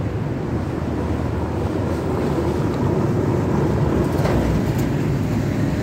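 Cars and a pickup truck drive past along the street.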